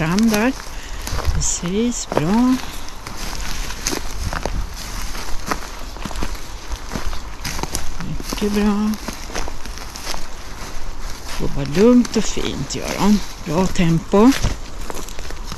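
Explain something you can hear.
Footsteps crunch on a dry forest floor.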